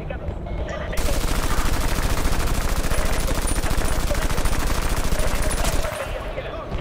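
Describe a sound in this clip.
A machine gun fires long rapid bursts.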